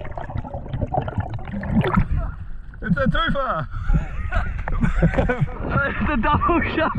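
Water sloshes and splashes close by at the surface.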